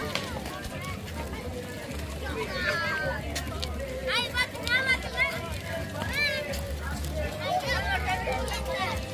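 Children chatter and call out in high voices nearby, outdoors.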